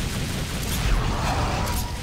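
An explosion roars.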